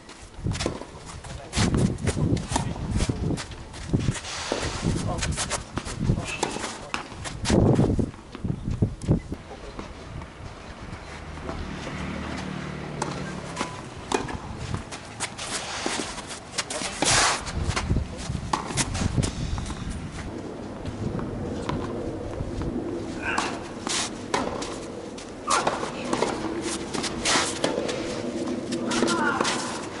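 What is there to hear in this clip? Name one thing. Shoes scuff and squeak on the court.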